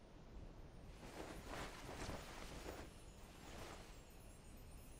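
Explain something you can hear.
Magic energy whooshes in a few soft bursts.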